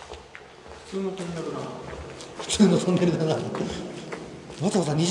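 A man talks in an echoing tunnel.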